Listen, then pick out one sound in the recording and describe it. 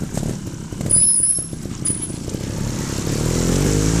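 Water splashes under a motorcycle's wheels.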